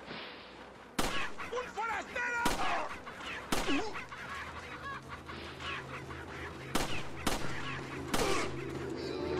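Pistol shots ring out one at a time.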